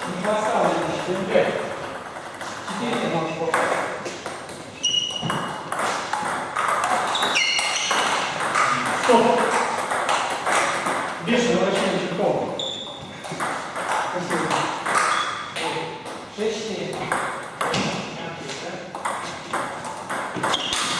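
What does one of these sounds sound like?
A ping-pong ball clicks sharply against paddles and a table.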